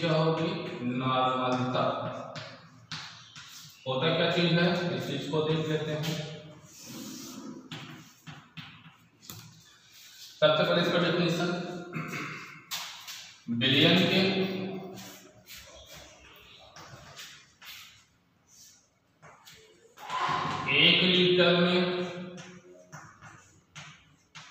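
A man speaks nearby, explaining with animation.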